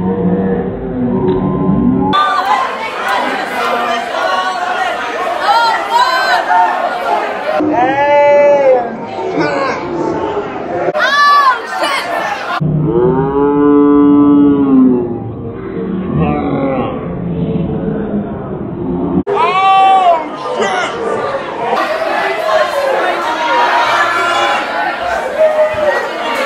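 A crowd of young women cheers and shouts loudly close by.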